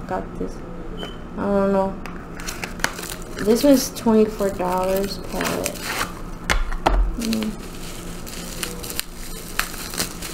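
Cardboard packaging rustles and taps as it is handled.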